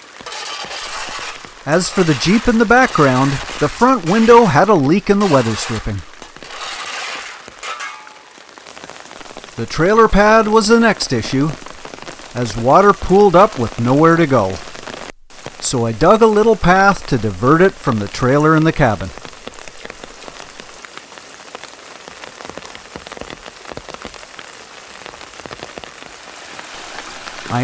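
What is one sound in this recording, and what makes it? Rainwater trickles and gurgles along a shallow ditch nearby.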